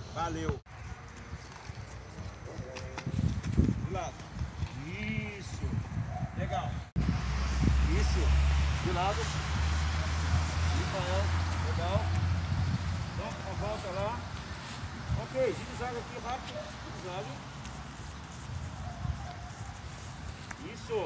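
Footsteps thud softly on grass as a boy runs.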